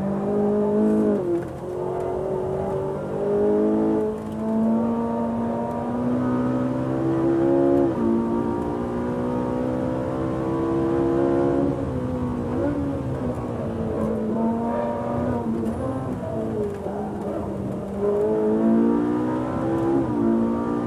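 A car engine roars loudly, revving up and dropping with each gear change.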